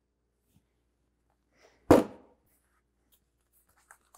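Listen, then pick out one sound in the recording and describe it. A metal tool knocks sharply against metal.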